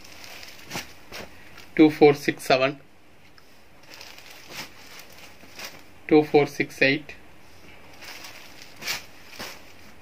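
Folded cloth rustles and slides as it is handled.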